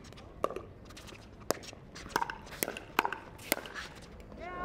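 Paddles strike a plastic ball in a quick back-and-forth rally.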